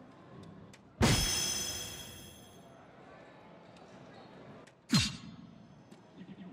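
An electronic dartboard plays a bright chime after each hit.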